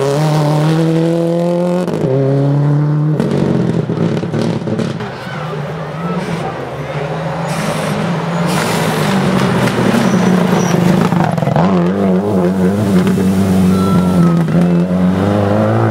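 A rally car engine roars loudly, revving up and down between gear changes.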